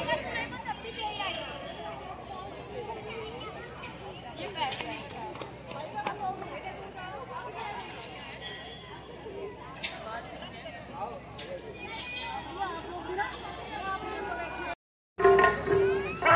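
A large crowd of men and women chatters outdoors.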